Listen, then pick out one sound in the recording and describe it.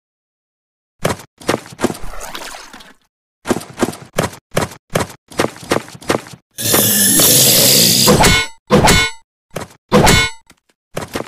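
Sword slashes whoosh and clang in quick bursts.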